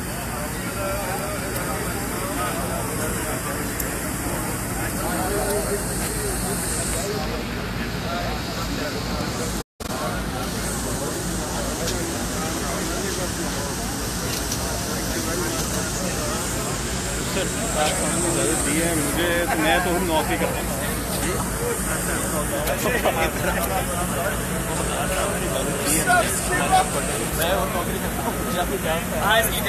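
A crowd of men chatter loudly nearby, outdoors.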